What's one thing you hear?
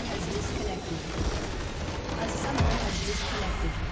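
A stone tower crumbles and collapses with a rumbling crash.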